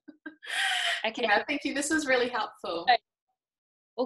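A young woman talks cheerfully over an online call.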